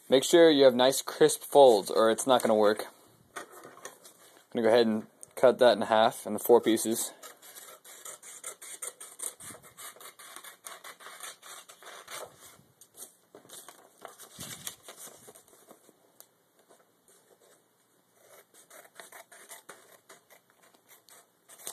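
Paper rustles and crinkles as it is folded and handled.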